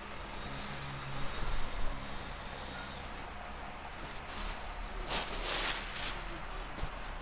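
Silk fabric rustles as it is unfolded and handled.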